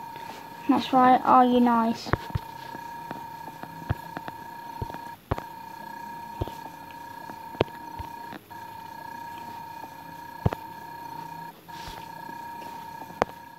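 Soft keyboard clicks tap out a short message on a touchscreen.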